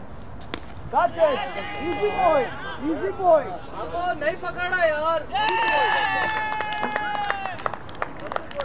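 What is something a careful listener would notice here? Men shout and cheer excitedly nearby, outdoors.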